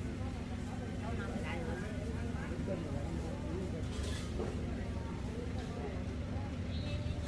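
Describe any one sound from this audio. Several women chat nearby outdoors.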